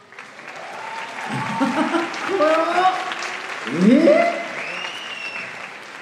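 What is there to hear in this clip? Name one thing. An audience cheers and screams loudly in a large hall.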